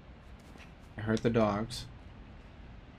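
A young man speaks briefly, close to a microphone.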